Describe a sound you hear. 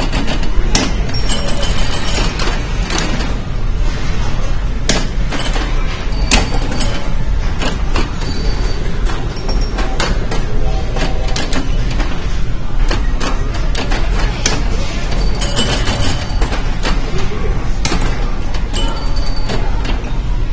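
A pinball machine plays electronic chimes and tones.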